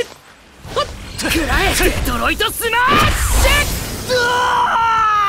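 A heavy punch lands with a booming crash of breaking rubble.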